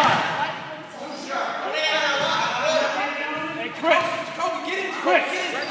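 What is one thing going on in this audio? Sneakers squeak on a hard gym floor.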